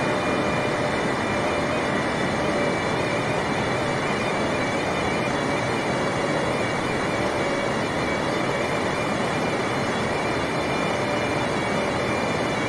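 Jet engines roar steadily and loudly.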